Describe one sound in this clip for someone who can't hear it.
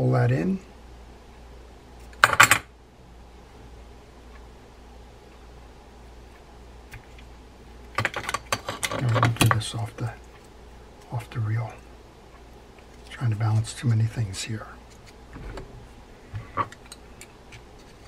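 Small metal parts click and clatter as they are handled.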